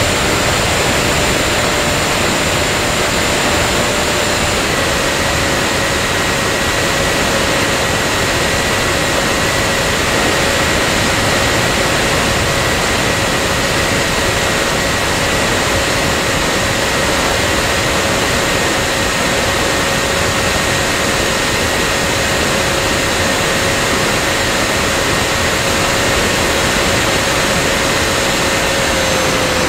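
Wind rushes loudly past a small model aircraft in flight.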